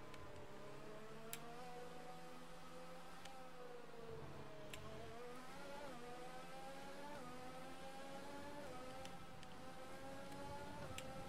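A racing car engine whines steadily and rises in pitch as it accelerates, dropping briefly at each gear change.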